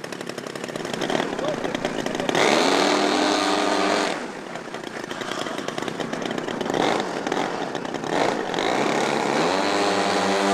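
Model plane engines drone loudly.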